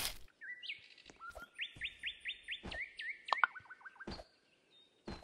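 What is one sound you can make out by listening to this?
Quick electronic game ticks chirp in rapid runs as blocks are placed.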